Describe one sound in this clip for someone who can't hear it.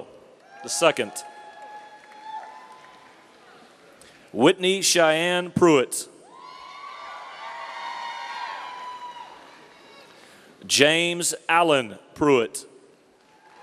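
A man reads out names through a microphone in a large echoing hall.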